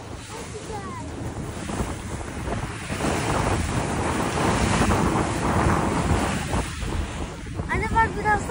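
Water rushes and splashes against the side of a moving boat.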